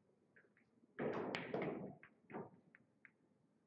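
Billiard balls clack together as they are gathered into a rack.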